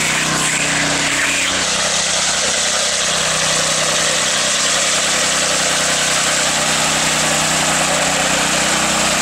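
A small petrol engine drones steadily nearby.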